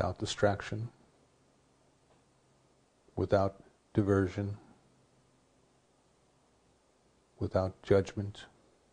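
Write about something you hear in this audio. An older man speaks calmly and slowly into a close microphone, with long pauses.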